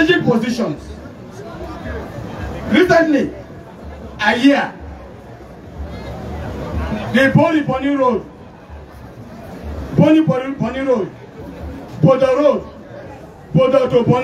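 A man speaks loudly into a microphone in short bursts, heard through loudspeakers outdoors.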